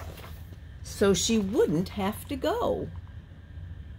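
A woman reads aloud with expression, close by.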